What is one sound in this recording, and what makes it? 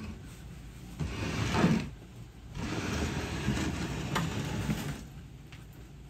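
A loaded wooden pallet rolls on metal pipes across a concrete floor.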